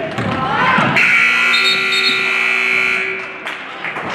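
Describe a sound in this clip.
A referee blows a long whistle.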